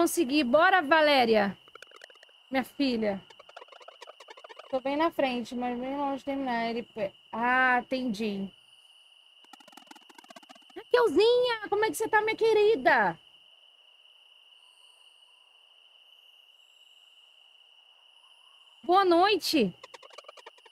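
A woman talks with animation through a close microphone.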